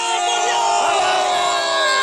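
A young man yells with his mouth wide open.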